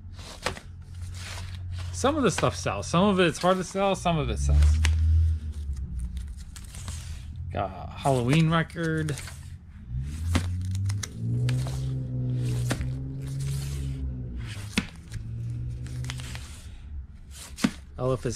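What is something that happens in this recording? Record sleeves rustle and slap as they are flipped through by hand.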